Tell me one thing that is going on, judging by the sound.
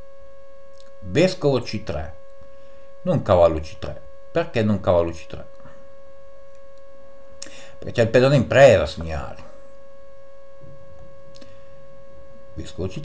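A man talks calmly and close into a microphone, in short bursts with pauses.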